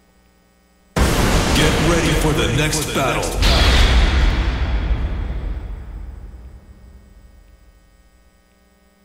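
A loud electronic crash bursts in and slowly fades away.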